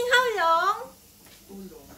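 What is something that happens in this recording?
A young woman exclaims loudly close by.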